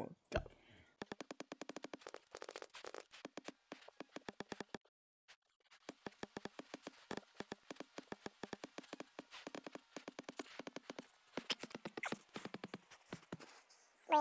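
Soft quick clicks patter as hands grip and climb.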